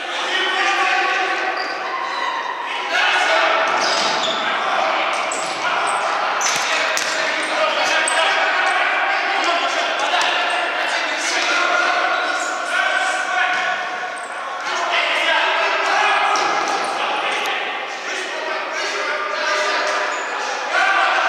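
A ball thuds as players kick it in a large echoing hall.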